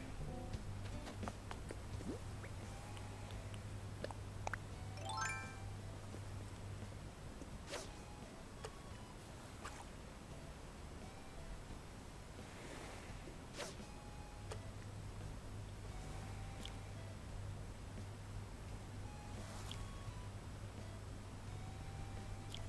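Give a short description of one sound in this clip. Gentle waves wash softly onto a shore.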